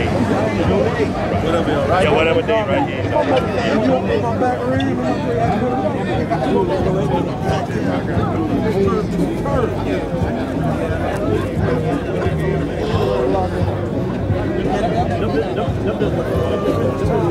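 A crowd of men talk over one another close by, outdoors.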